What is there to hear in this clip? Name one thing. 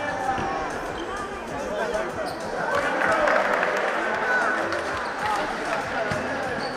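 A crowd of spectators chatters and cheers in an echoing indoor hall.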